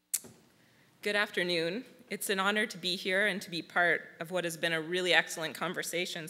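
A young woman speaks into a microphone through loudspeakers in a large hall.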